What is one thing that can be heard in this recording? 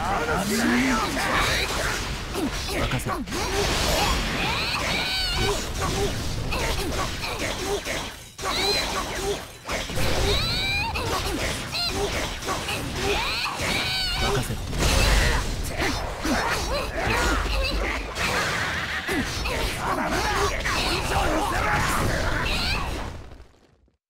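Swords clash and slash in quick, constant bursts.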